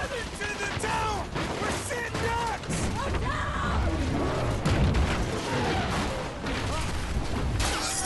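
A young man shouts in panic.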